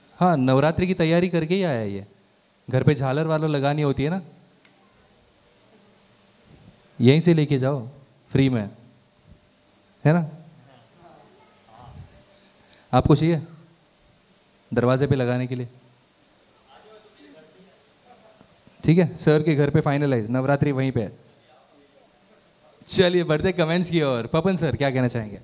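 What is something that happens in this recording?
A young man speaks with animation through a microphone and loudspeakers.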